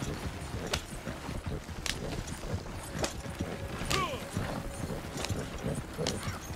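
Wooden wagon wheels rattle and creak over rough ground.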